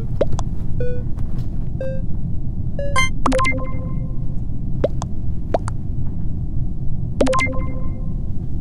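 Short electronic chimes ring out a few times.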